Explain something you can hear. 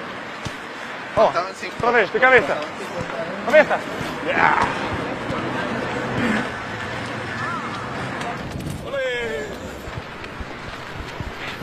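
A busy outdoor crowd murmurs in the background.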